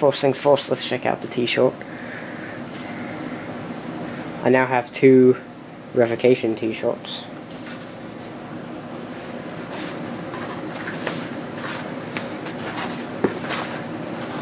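A cloth shirt rustles as it is unfolded.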